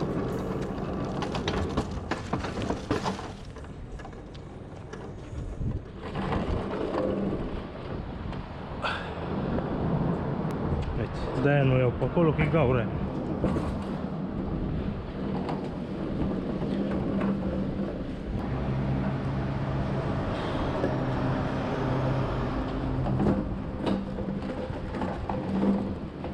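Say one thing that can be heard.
Hard plastic wheels rumble and rattle over rough concrete.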